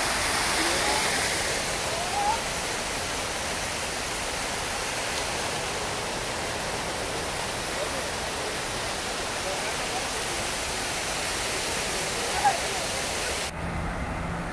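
Water from a fountain splashes and hisses steadily.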